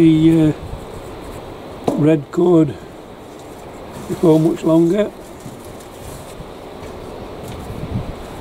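Carrots are pulled out of loose potting compost in a pot.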